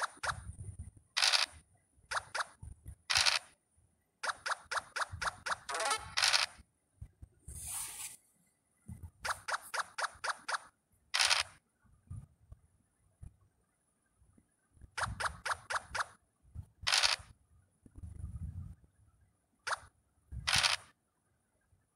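Quick runs of light clicking taps sound.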